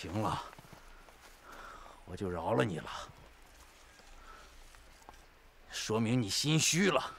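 A middle-aged man speaks close by in a sharp, taunting tone.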